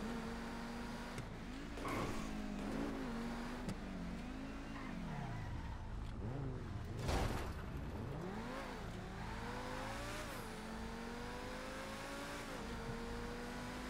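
A sports car engine hums and revs up and down as the car drives.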